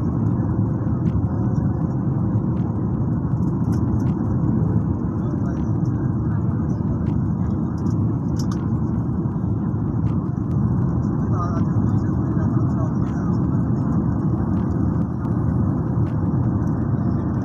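Jet engines roar steadily with a deep, loud rumble inside an airplane cabin.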